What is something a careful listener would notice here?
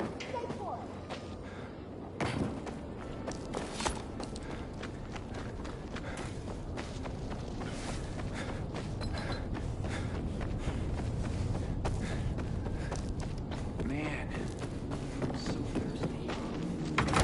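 Footsteps thud on dirt at a steady walking pace.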